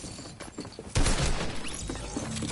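A gunshot cracks in a game.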